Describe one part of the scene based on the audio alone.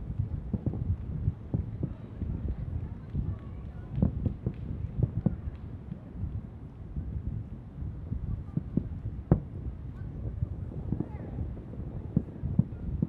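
Distant fireworks boom and thud in quick, irregular bursts.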